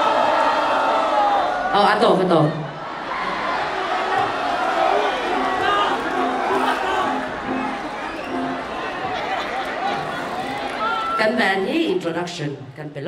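A large crowd cheers and murmurs outdoors.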